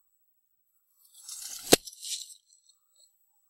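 Feed scatters onto the ground with a sudden rattle.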